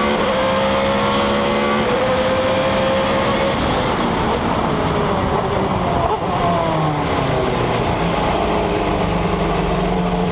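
Wind rushes past the open cockpit.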